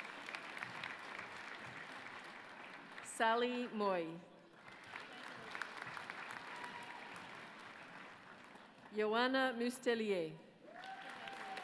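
An audience claps steadily in a large hall.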